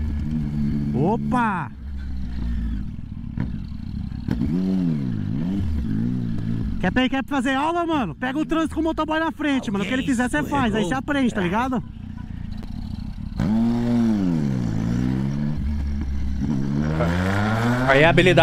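A motorcycle engine revs up and down repeatedly, close by.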